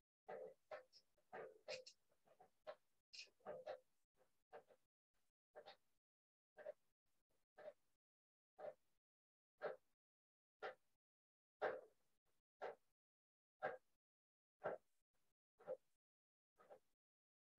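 A middle-aged man speaks with animation into a close microphone, heard as if over an online call.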